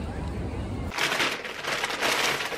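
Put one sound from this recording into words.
A paper shopping bag rustles as it is handled.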